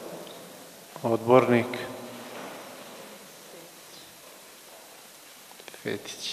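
A man speaks into a microphone in an echoing hall, in short bursts.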